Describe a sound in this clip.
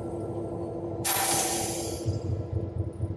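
Compressed air hisses in a short loud burst.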